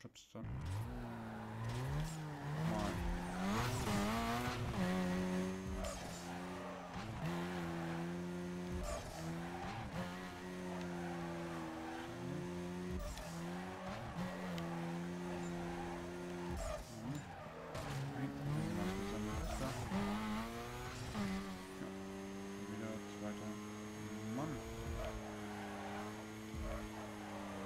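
A sports car engine revs hard and shifts up through the gears.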